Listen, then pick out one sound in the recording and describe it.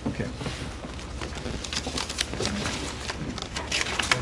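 Papers rustle as pages are turned.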